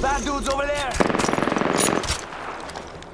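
A rifle is reloaded with quick metallic clicks and clacks.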